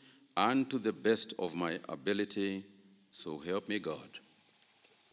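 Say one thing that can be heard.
A man speaks solemnly into a microphone.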